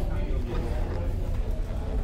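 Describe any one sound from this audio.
A plastic lid clicks onto a container.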